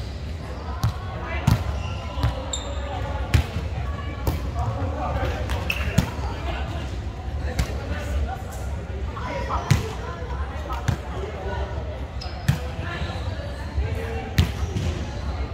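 A volleyball thuds off players' hands and arms in a large echoing hall.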